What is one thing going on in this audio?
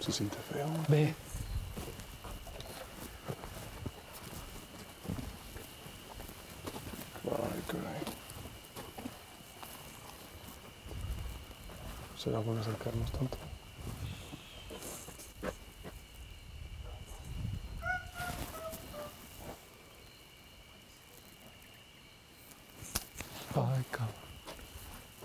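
A man speaks in a hushed voice nearby, in short bursts.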